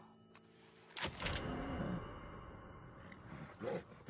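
A rifle lever clicks as it is worked.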